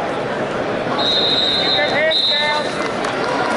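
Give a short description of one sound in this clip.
A referee's whistle blows twice in short blasts.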